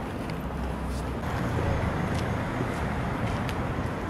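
Footsteps tap on paving stones nearby.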